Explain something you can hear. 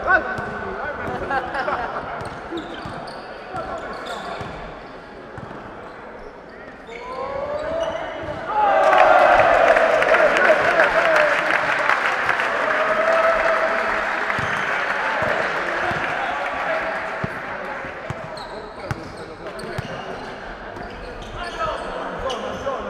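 Sneakers squeak on the floor.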